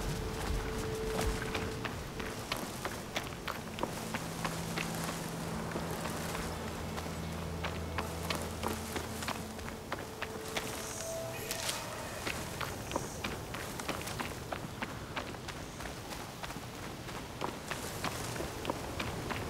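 Footsteps crunch quickly on dry ground.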